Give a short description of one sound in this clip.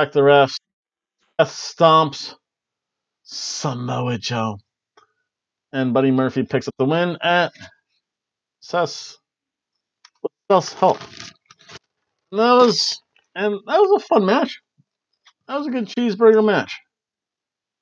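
A middle-aged man talks calmly and close to a microphone, in short bursts with pauses.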